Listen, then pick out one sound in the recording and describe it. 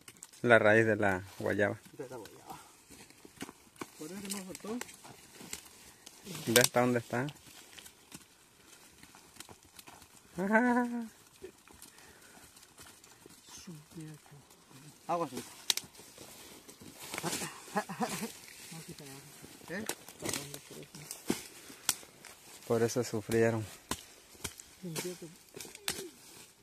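A machete chops into soil and roots.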